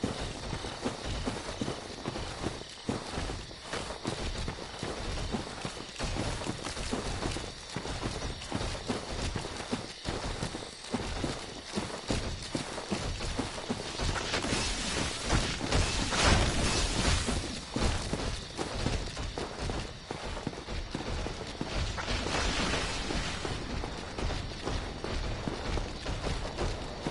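Heavy armoured footsteps thud and clank steadily on ground and stone.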